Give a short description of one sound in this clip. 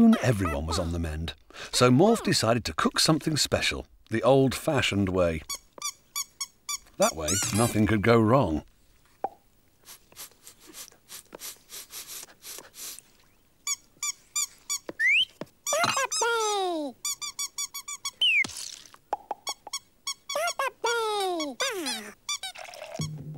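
A cartoonish voice babbles and squeaks in gibberish, close up.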